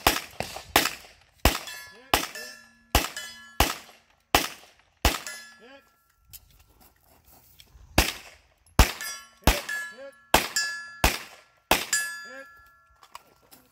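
Steel targets ring out with a metallic ping when hit.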